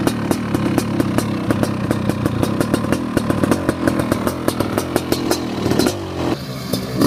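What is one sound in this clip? A dirt bike engine idles close by with a rapid putter.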